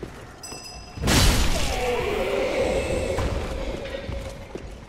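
A magical summoning burst whooshes loudly.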